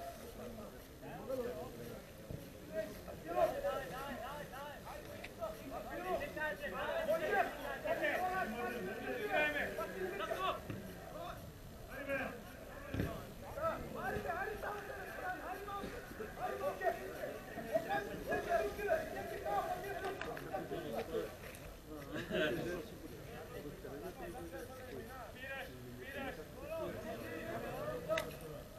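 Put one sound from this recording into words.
Several young men chat nearby in a wide open outdoor space.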